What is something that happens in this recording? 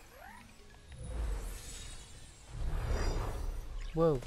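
A magical blast whooshes and rumbles.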